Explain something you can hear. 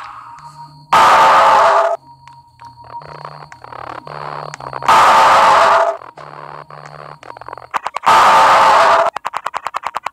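A loud, harsh screech blares suddenly several times.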